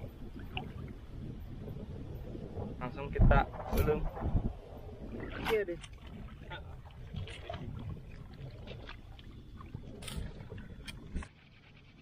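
Water splashes as a man wades through shallows.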